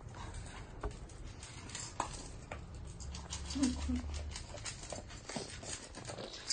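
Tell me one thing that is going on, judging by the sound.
A dog laps and chews food from a metal bowl.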